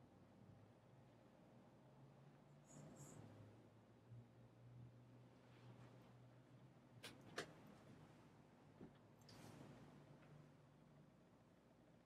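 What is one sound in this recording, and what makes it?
An elderly man murmurs softly in a low voice.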